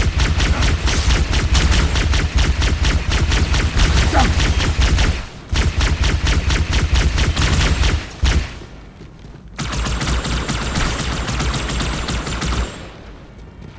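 Energy guns fire in rapid, crackling bursts.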